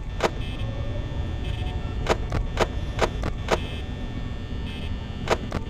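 A desk fan whirs steadily.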